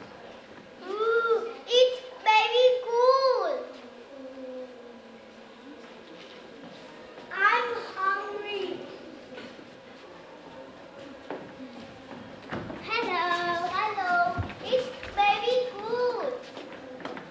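A young child speaks loudly in an echoing hall.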